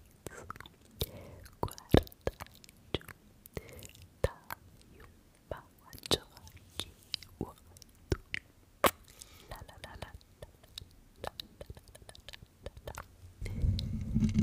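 Fingers snap and click close to a microphone.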